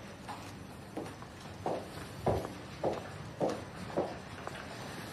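Footsteps tap across a hard floor indoors.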